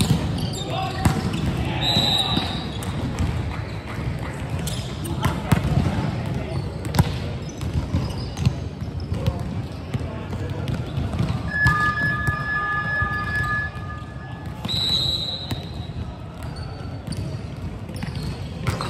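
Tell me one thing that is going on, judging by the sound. A volleyball is hit with sharp slaps in a large echoing hall.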